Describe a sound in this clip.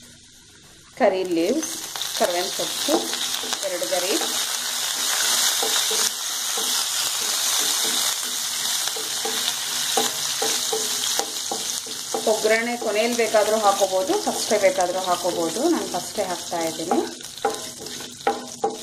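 Oil sizzles loudly in a hot pan.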